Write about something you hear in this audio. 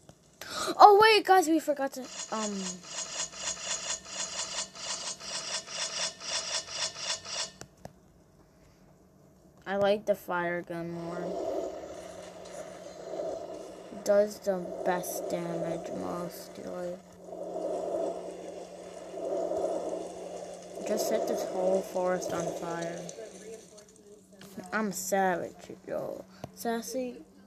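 A young girl talks with animation close to a microphone.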